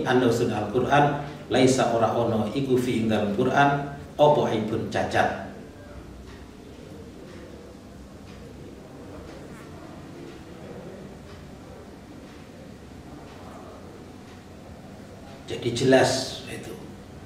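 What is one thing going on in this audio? An elderly man reads aloud calmly into a close microphone.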